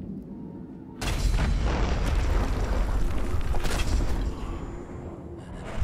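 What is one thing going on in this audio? Arrows twang from a bow and whoosh away.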